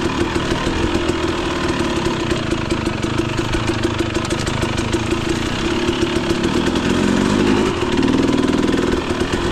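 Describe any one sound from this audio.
Tyres crunch over a rough dirt trail.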